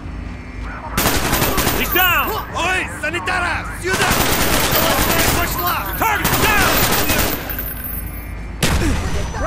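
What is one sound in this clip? A rifle fires rapid bursts of loud gunshots in an echoing indoor space.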